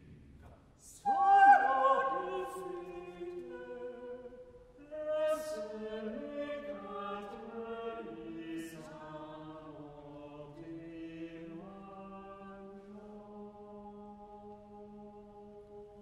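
A mixed choir sings slowly in a large, echoing hall.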